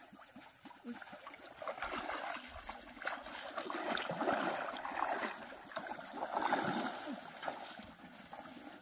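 Water splashes and sloshes as a man wades through a pond.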